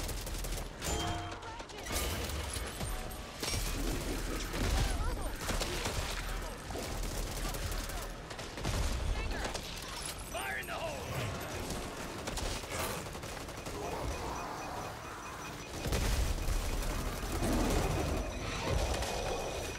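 Rapid gunfire rattles and booms.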